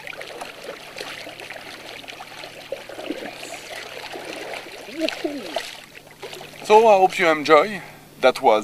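A paddle splashes and swishes through water.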